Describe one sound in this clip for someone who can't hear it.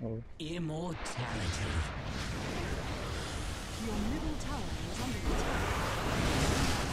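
Spell effects whoosh and crackle in a chaotic game battle.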